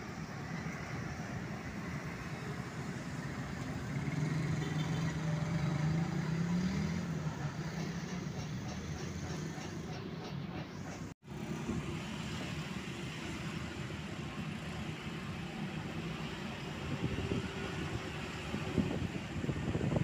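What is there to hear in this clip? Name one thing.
Motorcycles ride past on a street.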